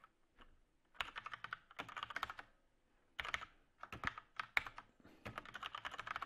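Keyboard keys clatter in quick bursts of typing.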